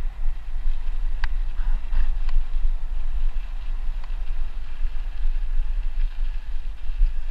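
Bicycle tyres roll and crunch over a dirt path.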